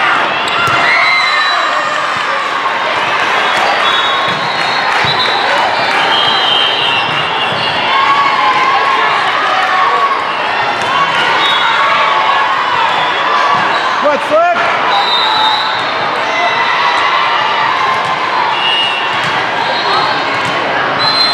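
Many young women chatter and call out across a large echoing hall.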